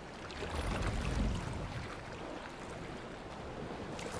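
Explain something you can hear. Oars splash in water.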